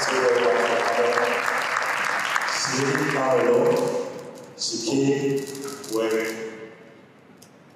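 A man speaks with animation into a microphone over loudspeakers in an echoing hall.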